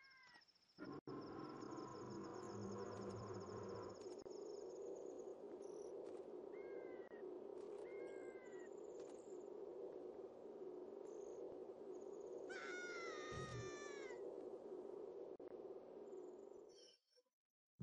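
A huge creature rumbles deeply as it opens its mouth.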